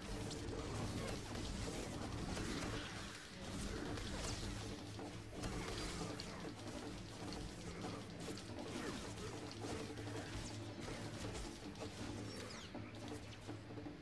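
Energy swords clash and hum in a fight.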